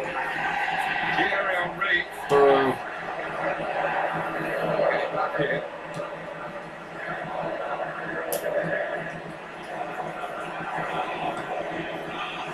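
A video game crowd roars steadily through a small speaker.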